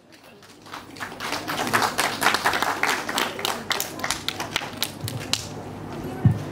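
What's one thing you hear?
A crowd claps and applauds loudly, then the applause fades.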